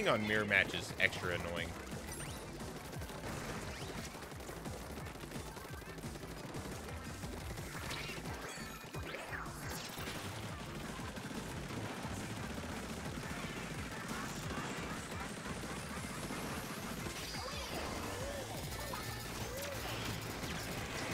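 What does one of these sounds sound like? Cartoon splatting and bursting effects sound from a game.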